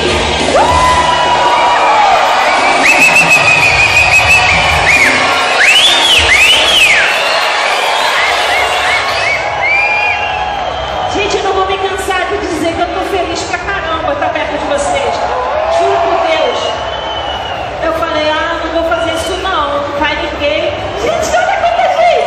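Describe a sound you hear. Pop music with a beat plays loudly through loudspeakers.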